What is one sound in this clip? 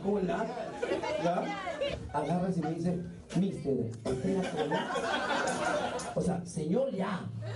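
A man talks animatedly through a microphone.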